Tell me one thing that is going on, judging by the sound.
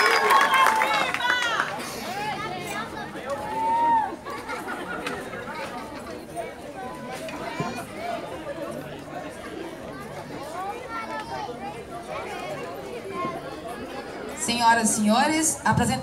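A crowd chatters and calls out nearby.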